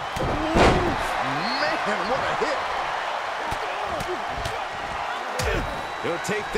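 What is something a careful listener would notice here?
Bodies thud on a wrestling ring mat.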